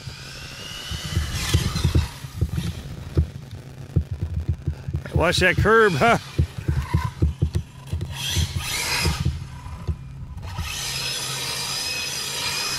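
A small toy car's electric motor whines, rising and falling in pitch as it speeds along.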